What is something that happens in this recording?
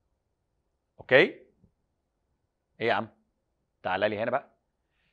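A man speaks with emphasis into a close microphone, in short bursts.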